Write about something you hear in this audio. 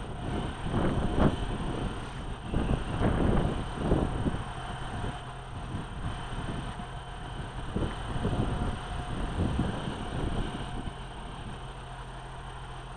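A passenger train rumbles past close by on the rails.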